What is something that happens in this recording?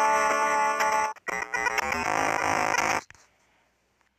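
Bright, beeping video game music plays loudly, then stops abruptly.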